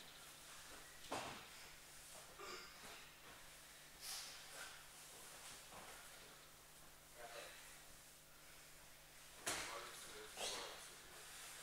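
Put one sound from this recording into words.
Bodies thump and scuffle on a padded mat in a large echoing hall.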